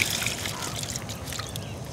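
Small fish splash and flap in shallow water.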